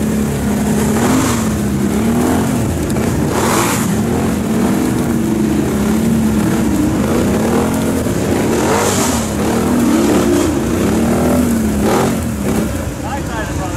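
ATV tyres churn through thick mud.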